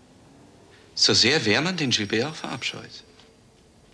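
An older man answers in a strained voice up close.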